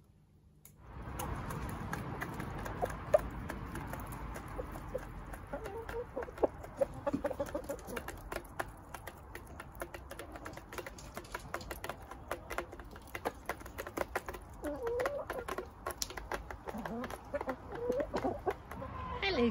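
Hens peck rapidly at food in a metal bowl, with quick tapping clicks.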